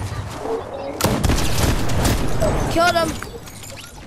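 Rapid gunshots crack loudly and close.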